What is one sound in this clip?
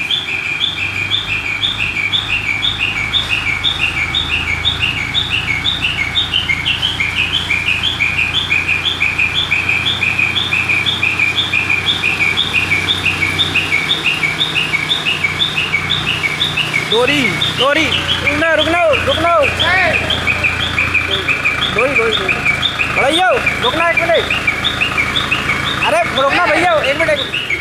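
A crane's engine hums steadily nearby.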